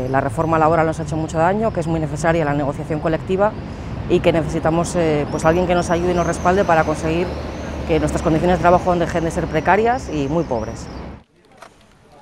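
A woman speaks calmly and steadily to a nearby microphone.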